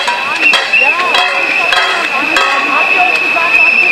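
A metal pot lid is banged repeatedly with sharp clangs.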